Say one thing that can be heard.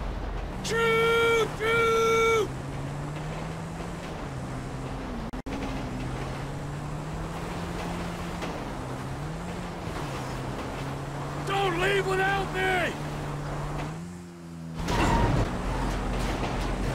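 A motorbike engine hums steadily, rising and falling with the throttle.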